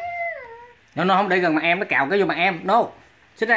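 A baby cries out loudly close by.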